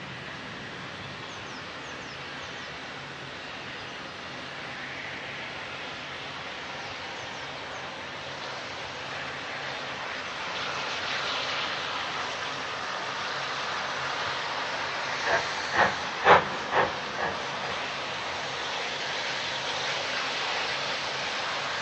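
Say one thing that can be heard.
A steam locomotive chuffs in the distance and grows louder as it approaches.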